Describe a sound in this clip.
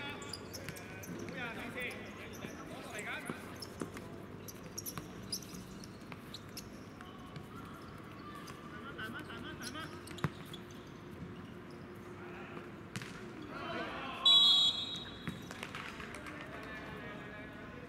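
Players shout to each other across an outdoor court.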